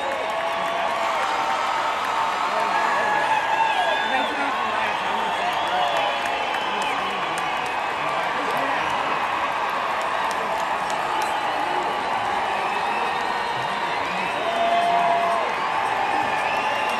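A large crowd cheers and shouts loudly in a big open venue.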